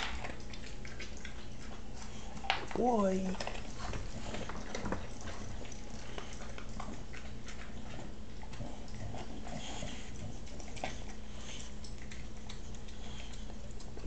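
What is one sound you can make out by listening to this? A dog sniffs along the floor.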